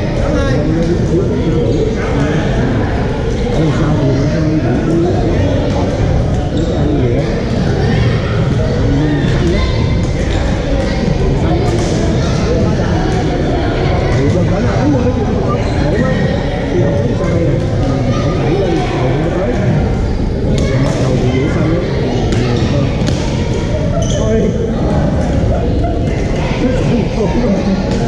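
Paddles tap plastic balls with sharp pops.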